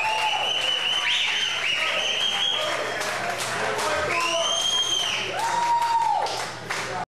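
Electric guitars play loudly with bending, wailing notes.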